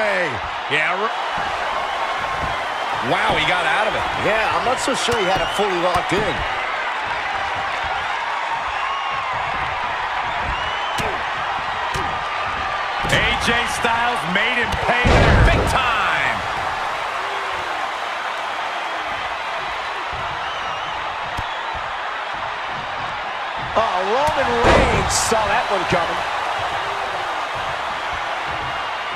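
A large crowd roars and cheers in a big echoing arena.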